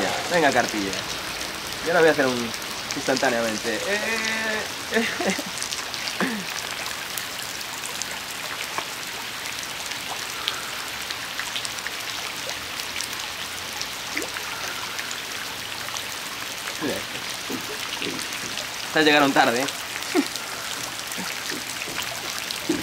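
Raindrops patter softly on water.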